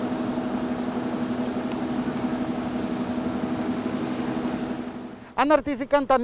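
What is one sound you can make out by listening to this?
A city bus idles with a steady engine hum.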